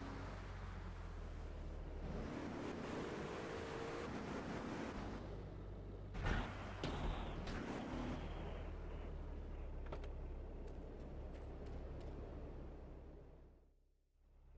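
A video game car engine hums as the car drives.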